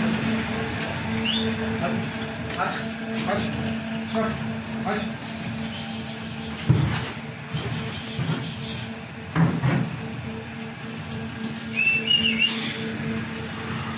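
A milking machine hums and pulses steadily.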